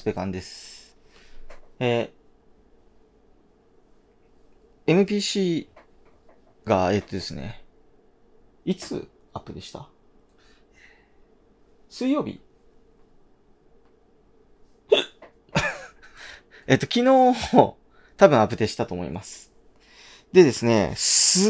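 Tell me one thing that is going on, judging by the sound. A man talks casually and close by, with pauses.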